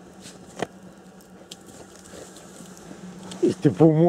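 A dog snuffles with its nose pushed into deep snow.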